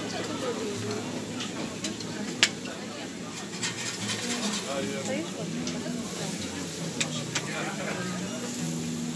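A crowd of men and women chatters nearby, outdoors.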